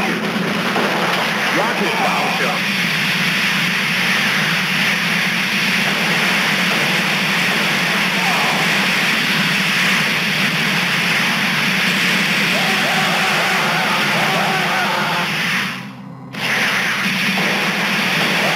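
Video game gunfire and explosions boom in quick succession.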